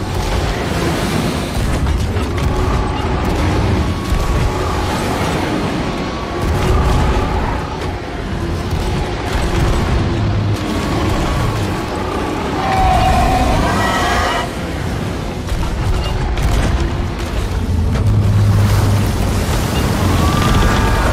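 Waves splash and churn on the sea.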